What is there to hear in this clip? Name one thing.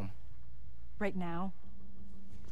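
A young woman asks a short question, close by.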